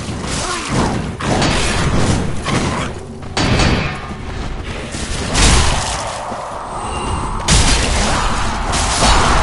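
Swords clash and scrape in a fight.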